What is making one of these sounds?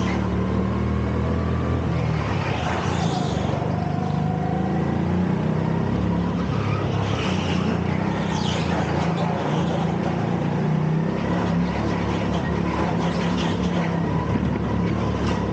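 A go-kart engine drones loudly and steadily up close.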